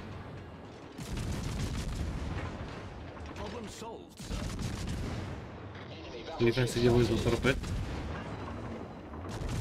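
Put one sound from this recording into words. Shells explode with rumbling blasts.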